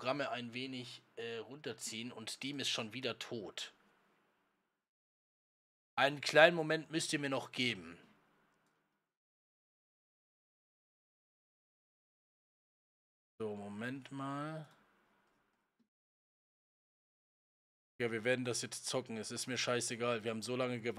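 A man talks into a close microphone in bursts, with pauses between.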